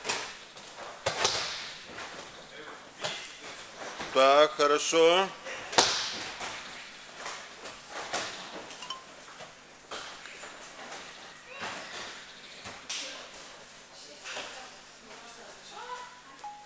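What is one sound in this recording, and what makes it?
Bare feet shuffle and pad across mats.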